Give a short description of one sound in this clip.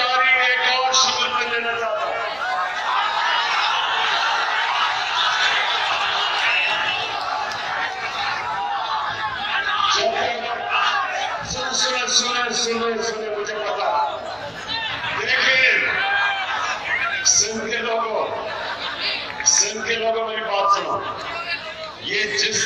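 A large crowd cheers and chants.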